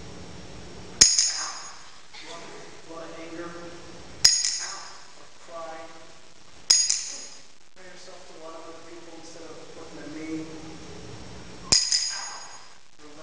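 A hammer strikes metal with a sharp ringing clang.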